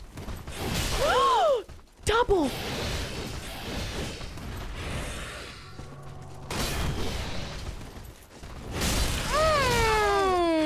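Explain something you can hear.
A creature lets out shrill, wailing shrieks.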